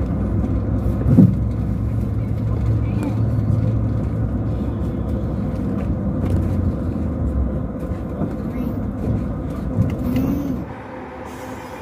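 A vehicle's engine rumbles steadily while driving over a rough road.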